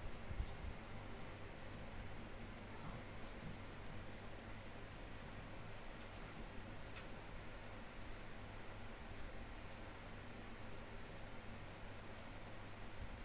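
A cat licks and nibbles at its paw close by.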